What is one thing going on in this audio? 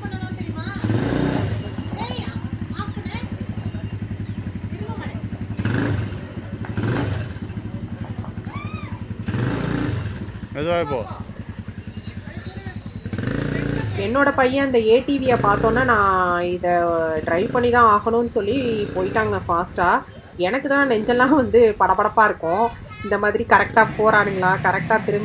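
A small quad bike engine putters and hums nearby.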